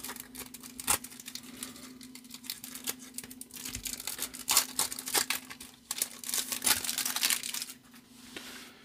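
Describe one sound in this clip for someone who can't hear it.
Thin plastic crinkles and rustles as a card is slid out of a sleeve.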